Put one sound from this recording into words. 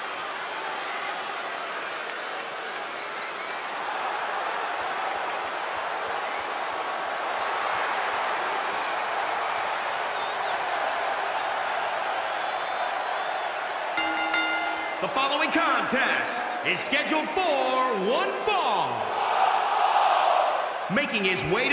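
A large crowd cheers and roars in a big echoing arena.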